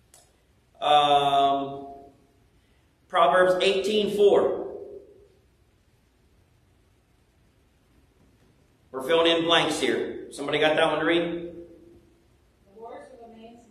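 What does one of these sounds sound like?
A man speaks slowly and calmly into a microphone, with pauses, in an echoing room.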